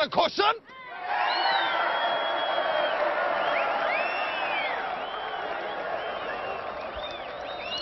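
A crowd cheers and shouts loudly.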